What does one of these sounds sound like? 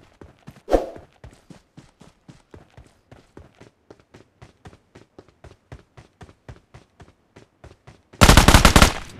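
Footsteps of a game character running thud in a quick even rhythm.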